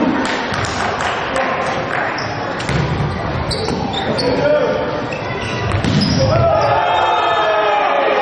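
A volleyball is struck by hand in a large echoing sports hall.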